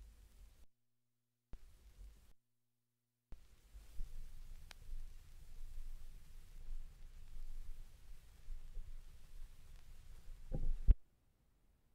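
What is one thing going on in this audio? A record's stylus crackles and rumbles softly in the groove.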